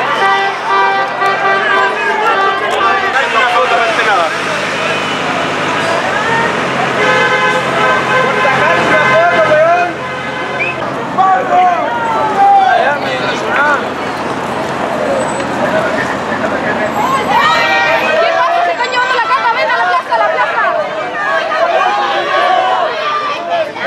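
A crowd of people shouts and chants loudly nearby outdoors.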